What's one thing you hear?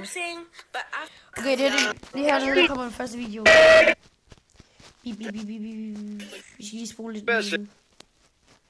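A young boy talks with animation, heard through a phone's speaker.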